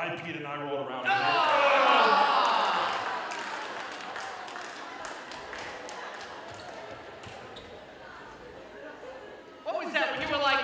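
Children shout and cheer loudly.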